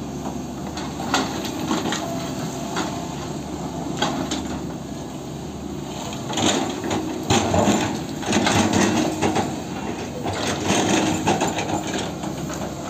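An excavator bucket scrapes and knocks against earth and logs.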